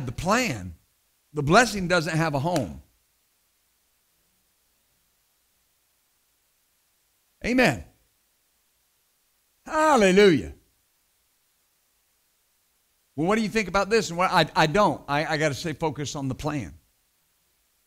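A middle-aged man preaches through a microphone in a measured voice, with long pauses.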